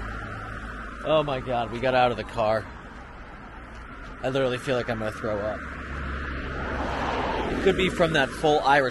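A middle-aged man speaks with animation close to the microphone, outdoors.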